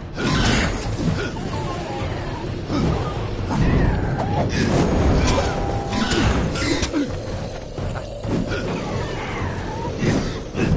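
Swords clash and slash in a fast game fight.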